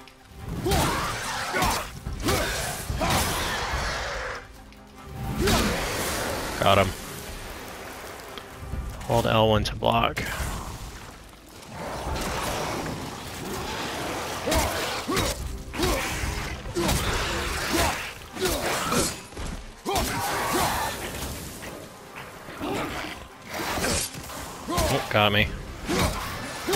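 An axe strikes with heavy, sharp impacts.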